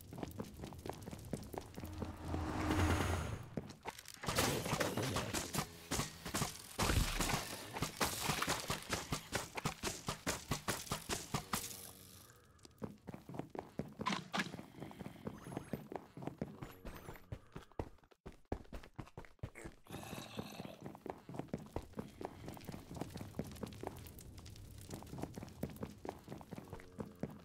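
Footsteps tap quickly and steadily on stone.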